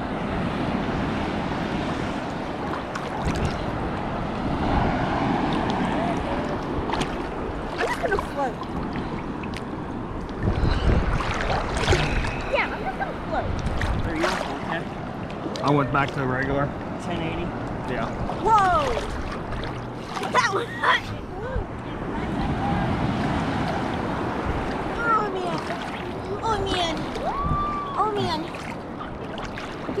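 Sea water sloshes and laps steadily.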